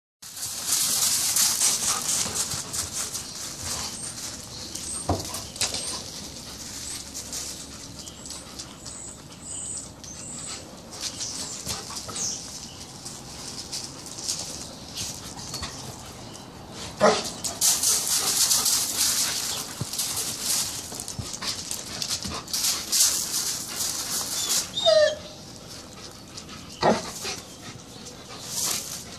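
Dogs growl and snarl as they play-fight close by.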